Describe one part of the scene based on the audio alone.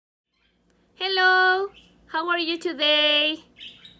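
A young woman speaks cheerfully and close to a microphone, her voice drawn out and sing-song.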